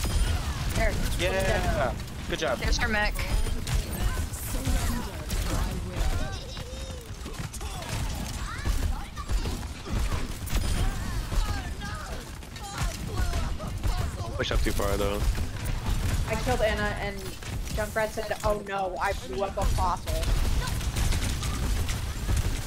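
A rapid gun fires in bursts.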